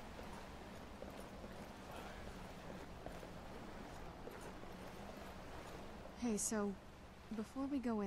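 Footsteps crunch on snowy stone.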